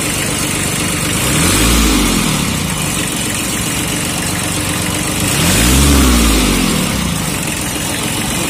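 A small diesel tractor engine revs up and settles back twice.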